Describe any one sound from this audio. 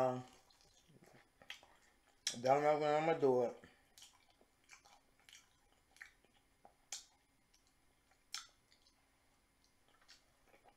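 A young woman chews and crunches food close to a microphone.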